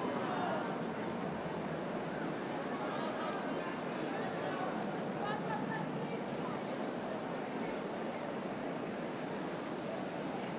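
A crowd chatters outdoors all around.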